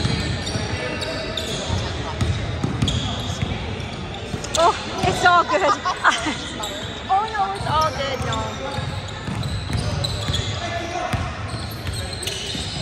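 Young players and onlookers call out in a large echoing hall.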